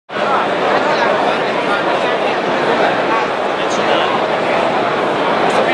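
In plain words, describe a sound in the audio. A large crowd of men and women chatters loudly in a big echoing hall.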